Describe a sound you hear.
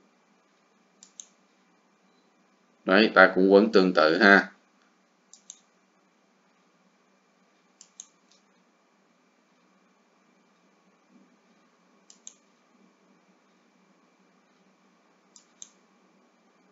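Metal pliers click and scrape.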